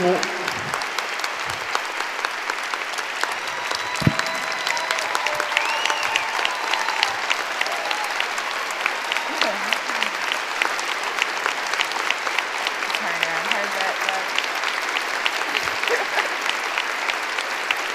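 A large audience claps steadily in a big hall.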